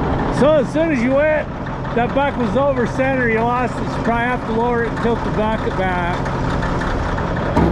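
A heavy diesel engine idles nearby with a steady low rumble.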